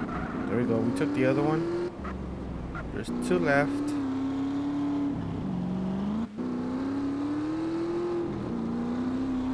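A motorcycle engine hums and revs, rising and falling in pitch.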